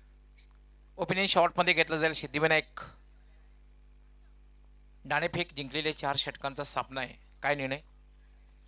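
A man speaks with animation into a microphone over a loudspeaker.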